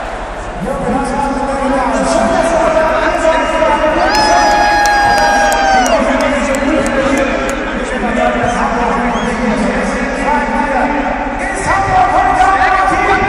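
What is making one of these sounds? A large stadium crowd sings and chants loudly, echoing around the stands.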